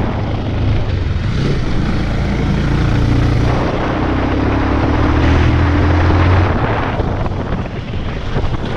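Wind rushes past, blowing loudly.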